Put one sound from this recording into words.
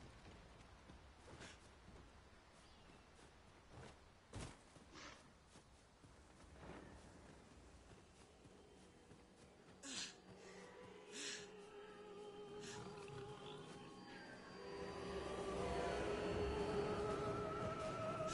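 Footsteps thud and rustle through grass.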